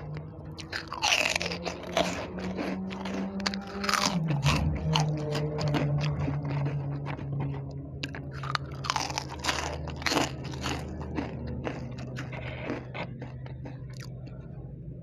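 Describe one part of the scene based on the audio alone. A woman chews with wet mouth sounds.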